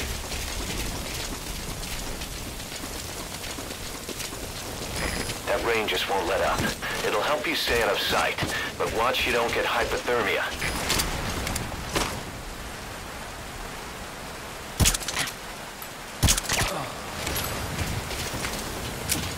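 Footsteps run on wet ground.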